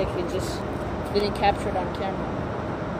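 A wooden stick scrapes and taps on pavement.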